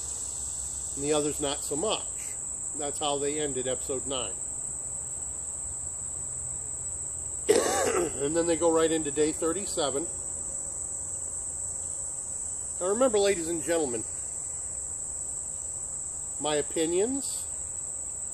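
A middle-aged man speaks calmly in short phrases with long pauses, close by.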